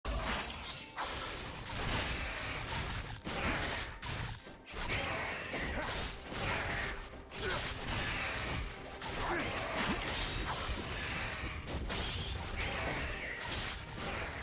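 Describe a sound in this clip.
Blades clash and magic effects crackle in a fast game fight.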